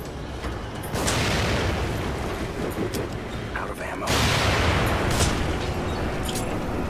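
Fire roars and crackles from burning torches.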